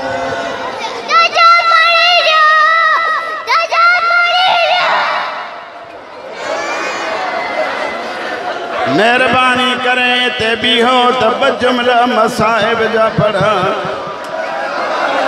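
A crowd of men chants and wails loudly, close by.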